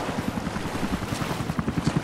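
Water splashes as a woman wades through it.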